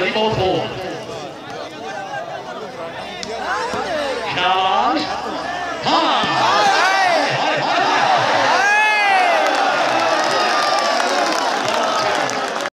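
A large outdoor crowd murmurs and cheers.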